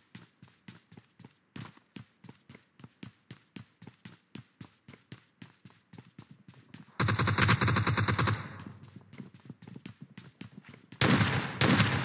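Game footsteps run in a quick, even rhythm.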